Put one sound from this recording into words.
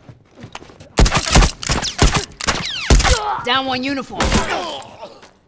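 Gunshots fire loudly in quick bursts.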